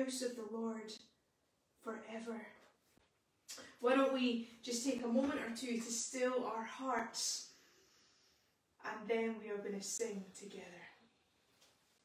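A woman speaks calmly and clearly, close by in a small room.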